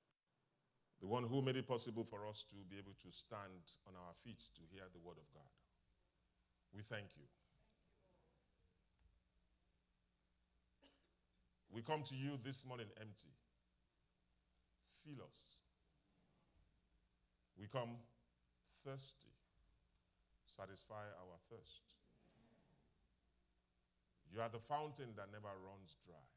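A man speaks slowly and solemnly into a microphone, with long pauses.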